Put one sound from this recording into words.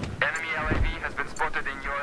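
A rifle fires sharp shots close by.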